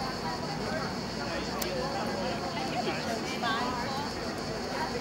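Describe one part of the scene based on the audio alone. A crowd of people chatters outdoors in a busy open square.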